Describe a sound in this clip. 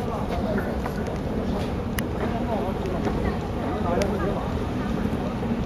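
Material clatters along a conveyor belt.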